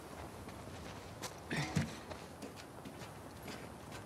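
A person climbs a metal ladder with clanking steps.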